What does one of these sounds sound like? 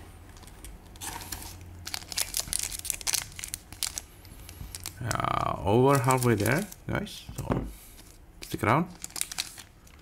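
A foil wrapper crinkles and tears close by.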